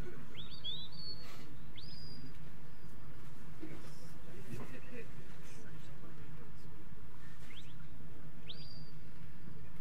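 A shepherd gives sharp rising whistle commands to a sheepdog.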